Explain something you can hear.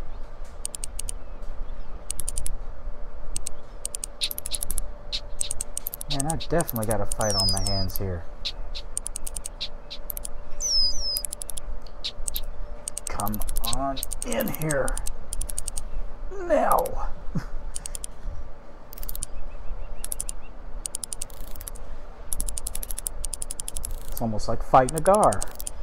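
A fishing reel clicks rapidly as line is wound in.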